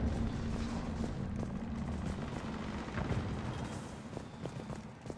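Boots step on a hard metal floor.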